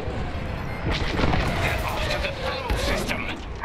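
A loud explosion bursts and rumbles.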